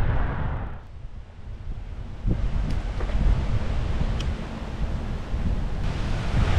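Wind rumbles and buffets loudly across a microphone outdoors.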